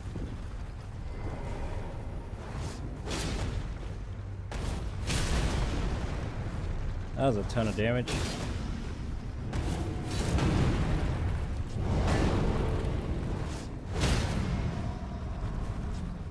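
A giant creature stomps with heavy, booming thuds.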